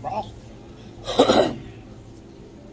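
A man blows on hot food.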